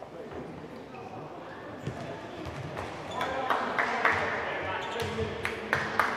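A crowd cheers and shouts in a large echoing hall.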